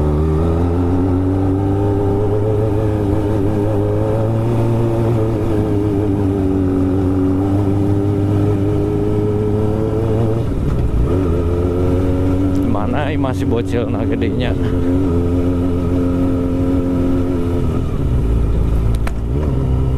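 Tyres roll over a rough dirt road.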